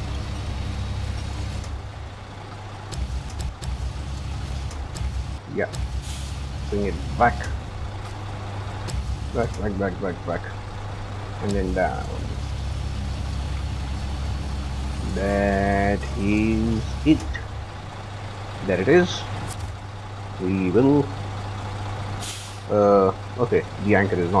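A truck engine rumbles steadily at idle.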